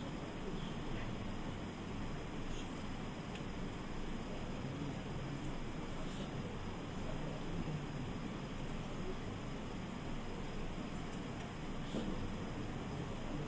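Ceiling fans whir steadily.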